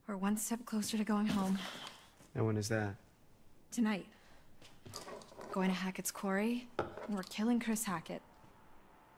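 A young woman speaks calmly and firmly, close by.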